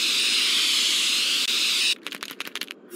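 Spray paint hisses from a can.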